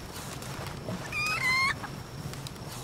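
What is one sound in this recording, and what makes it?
A small cartoon creature chirps in quick, high, rising calls.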